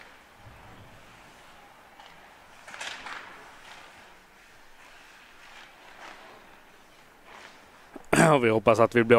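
Ice skates scrape and swish across the ice in a quiet, echoing arena.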